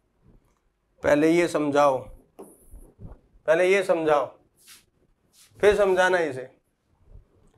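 A man speaks through a microphone in a lively teaching voice.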